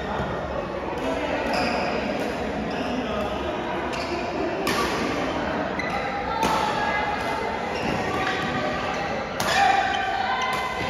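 Shuttlecocks are hit sharply with rackets again and again in a large echoing hall.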